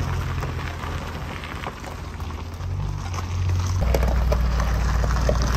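A vehicle engine drones low and steadily.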